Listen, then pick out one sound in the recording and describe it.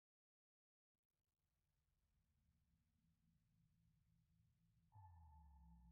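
A low electronic rumble builds steadily louder.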